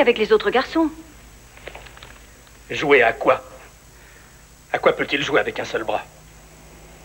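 A woman speaks sharply and close by.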